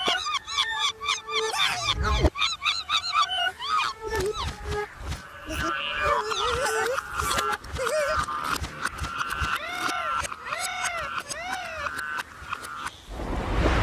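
Baby birds chirp and squeak in high, quick calls.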